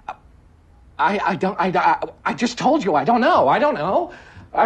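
A man speaks loudly and with agitation.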